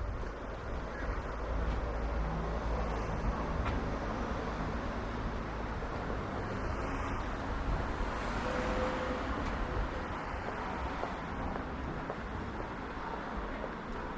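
Footsteps tap on a pavement outdoors.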